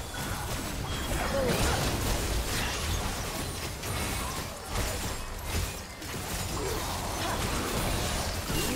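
Game spell effects whoosh and crackle in a busy battle.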